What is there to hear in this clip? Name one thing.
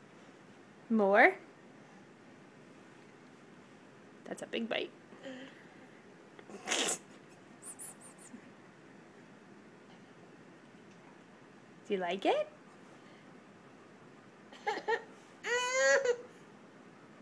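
A baby whimpers and cries close by.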